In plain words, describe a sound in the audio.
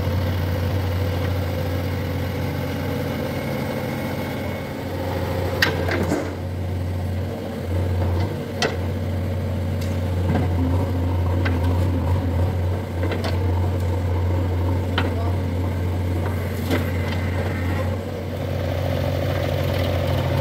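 A diesel engine of a digger rumbles steadily close by.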